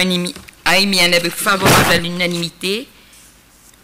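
An elderly woman speaks calmly through a microphone.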